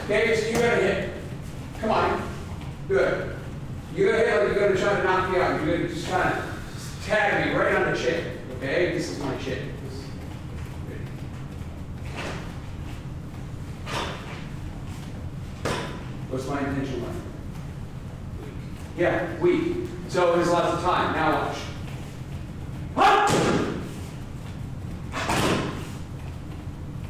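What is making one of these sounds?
A man speaks calmly in a room with slight echo.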